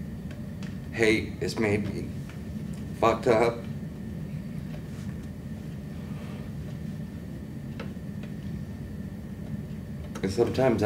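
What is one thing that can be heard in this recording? A young man speaks briefly in short bursts, close by.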